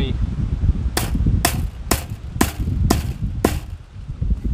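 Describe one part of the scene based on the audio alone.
A hammer taps sharply on metal several times.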